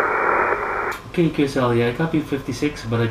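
A man speaks closely and calmly into a microphone.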